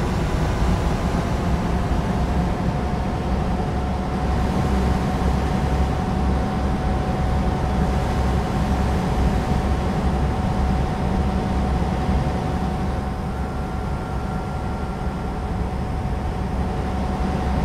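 A truck's diesel engine drones steadily at cruising speed.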